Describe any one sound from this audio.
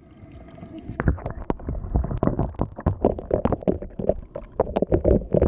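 Muffled knocks and crackles sound underwater.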